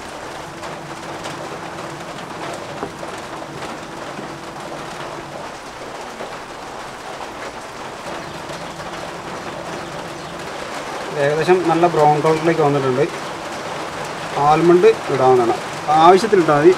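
Sugar sizzles and bubbles in a hot pan.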